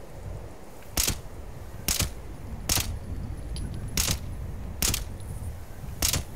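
Gunshots fire in a quick series of single sharp cracks.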